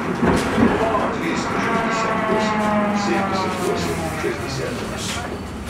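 A tram motor whines and winds down as the tram slows to a stop.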